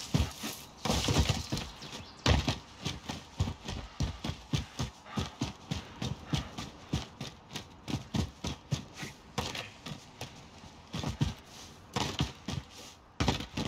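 Quick footsteps run over stone and grass.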